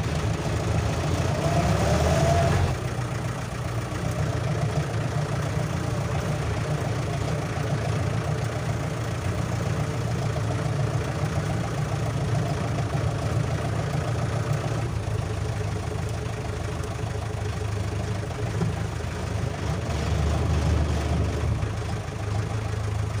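A vehicle engine rumbles steadily while driving slowly.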